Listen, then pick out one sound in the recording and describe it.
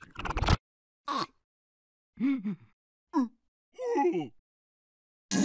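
A cartoon creature murmurs and squeaks in short bursts.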